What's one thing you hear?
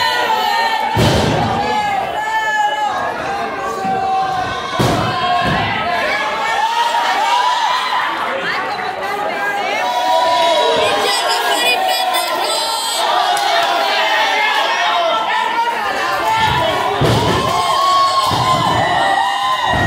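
Bodies thud heavily onto a wrestling ring's mat.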